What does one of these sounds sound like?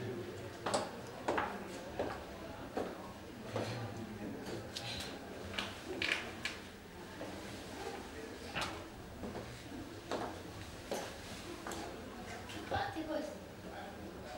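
A woman's footsteps tap in an echoing passage, coming closer.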